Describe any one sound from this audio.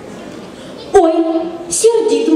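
A man speaks into a microphone, heard over loudspeakers in a large hall.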